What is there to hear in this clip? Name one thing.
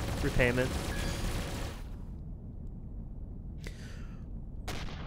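Laser weapons fire in sharp bursts.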